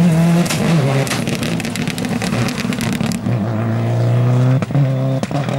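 Loose gravel sprays and crackles under spinning tyres.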